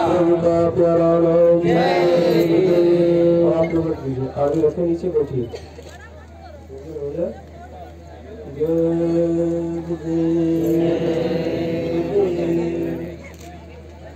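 A man sings slowly through a loudspeaker, holding long notes.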